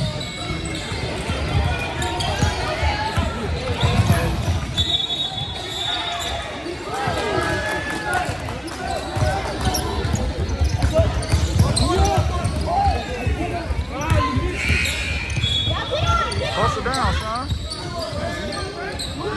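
A basketball thumps as players dribble it.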